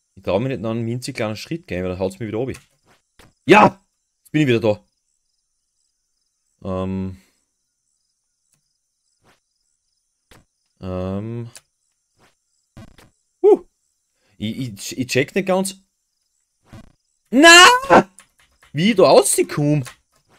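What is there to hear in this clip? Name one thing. A young man talks with animation close to a microphone, in bursts with pauses.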